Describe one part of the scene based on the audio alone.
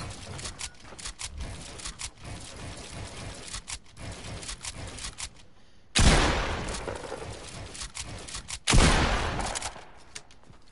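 A pickaxe strikes and breaks building walls.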